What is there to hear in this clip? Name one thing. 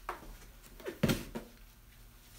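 A cardboard box thumps down onto a table.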